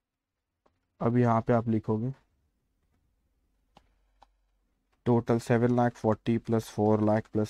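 A young man speaks calmly and clearly into a close microphone, in short bursts with pauses.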